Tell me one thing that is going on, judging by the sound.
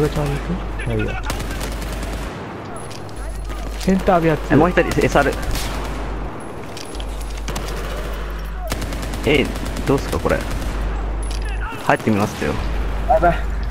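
Automatic gunfire rattles in short bursts.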